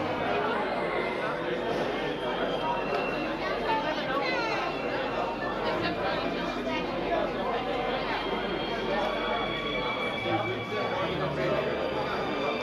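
A crowd of men and women chatters all around in a busy room.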